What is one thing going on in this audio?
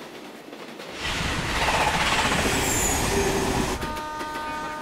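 A train roars past close by.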